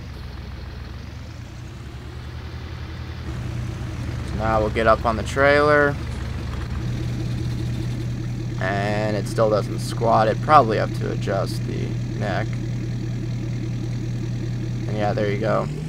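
A diesel engine idles with a steady low rumble.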